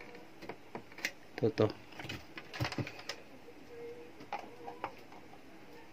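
A circuit board knocks and clicks against a plastic housing as it is handled.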